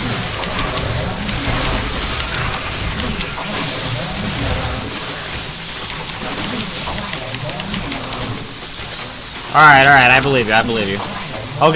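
Game creatures clash and screech in a fast battle.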